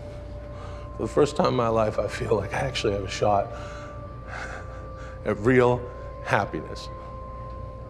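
A man speaks close by in a strained, emotional voice.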